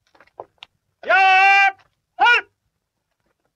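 A man shouts a loud drawn-out command outdoors.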